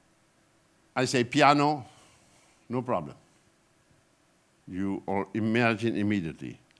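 An elderly man speaks calmly into a microphone in a hall, in short bursts with pauses.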